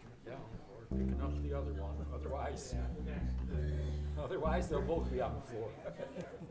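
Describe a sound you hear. A band of acoustic guitars starts playing.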